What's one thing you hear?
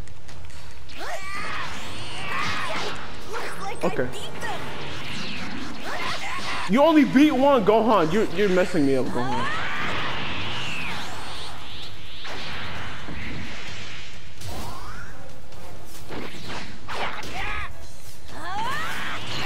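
Energy blasts whoosh and crackle in a fight.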